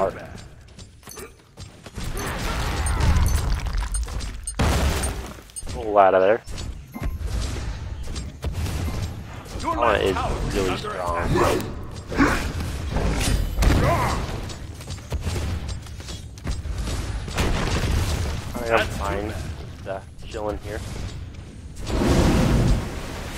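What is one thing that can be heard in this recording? Game sound effects of blows and magic blasts ring out.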